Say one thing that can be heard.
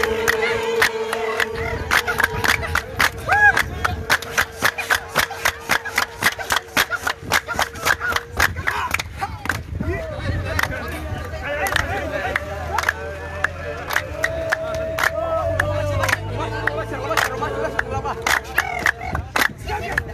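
A crowd claps in a steady rhythm outdoors.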